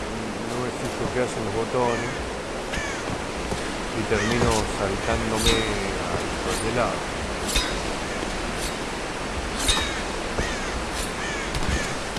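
Water rushes down a waterfall nearby.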